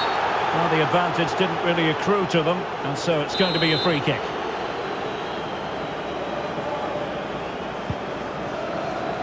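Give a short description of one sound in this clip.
A large crowd cheers and murmurs steadily in a big open stadium.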